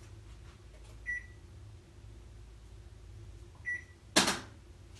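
A washing machine beeps twice.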